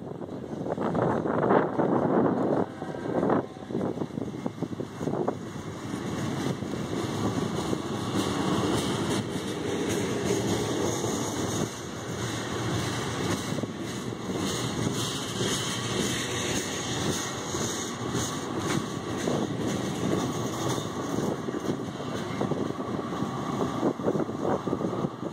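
Train wheels clatter and clank over the rail joints.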